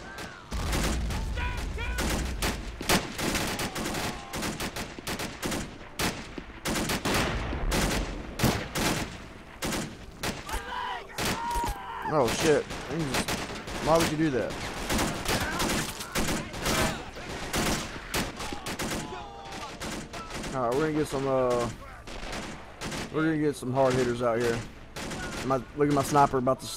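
Rifles and machine guns fire in rapid bursts.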